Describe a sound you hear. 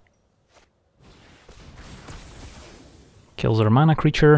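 A soft magical whoosh sweeps and fades.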